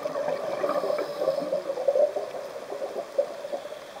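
Air bubbles gurgle and burble from a diver's breathing underwater.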